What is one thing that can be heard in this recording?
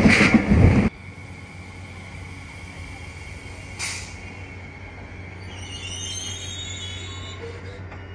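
A train rolls slowly in with a soft rumble.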